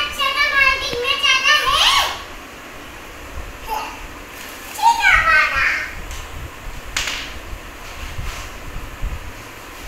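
A young child's bare feet pat on a hard floor.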